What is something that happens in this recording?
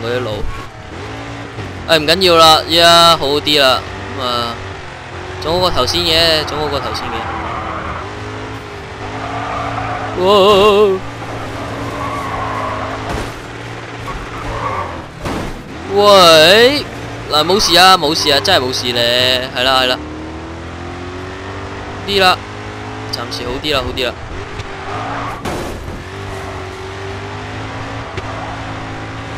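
A car engine roars and revs at high speed.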